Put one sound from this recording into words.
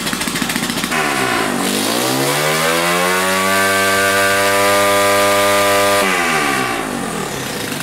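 A small engine revs up high, holds, and then drops back to idle.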